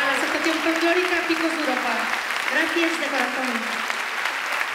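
A group of singers sings along with the band.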